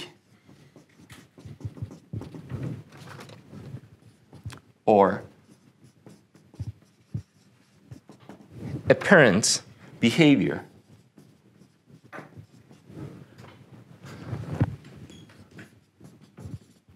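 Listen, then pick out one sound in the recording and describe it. A man speaks calmly, lecturing close to a microphone.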